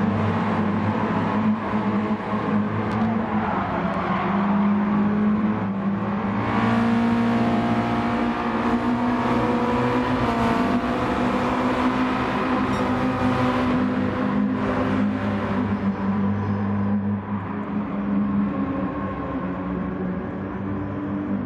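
Racing car engines roar steadily, rising and falling in pitch as gears change.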